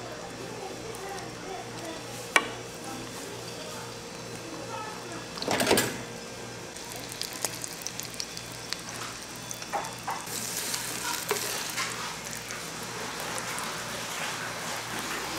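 Egg sizzles and crackles on a hot griddle.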